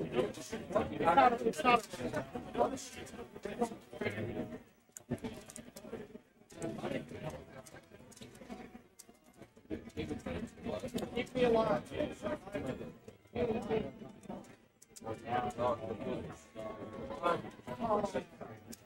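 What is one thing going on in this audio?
A crowd of people chatters in a large room.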